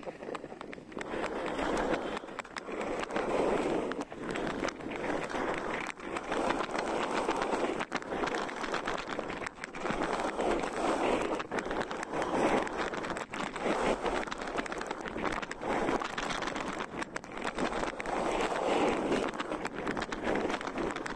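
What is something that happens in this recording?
Skis scrape and hiss over snow in swelling waves.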